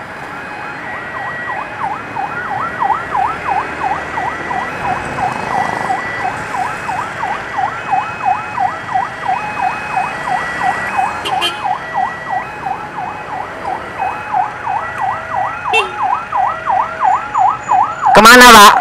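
An ambulance siren wails with a fast, rapid yelp close by.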